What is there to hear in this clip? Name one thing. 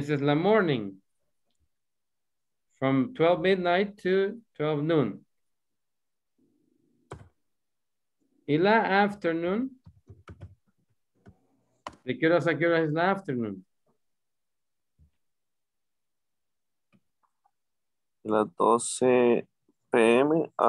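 A man speaks slowly through an online call, pausing often between short phrases.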